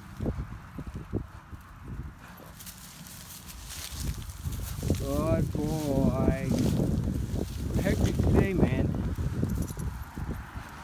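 Footsteps crunch on dry grass.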